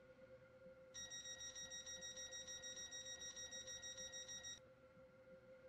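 A train's door warning beeps steadily in a rapid, high pulsing tone.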